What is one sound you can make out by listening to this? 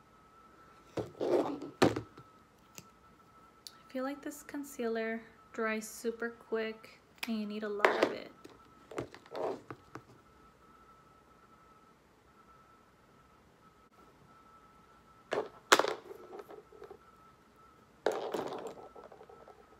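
Small plastic makeup containers click and tap.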